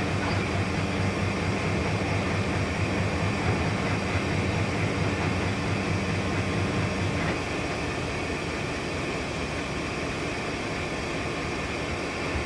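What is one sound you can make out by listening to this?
A freight train rumbles past close by on the rails.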